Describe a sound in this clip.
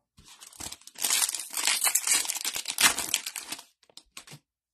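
A foil wrapper crinkles and rustles close by as it is torn open.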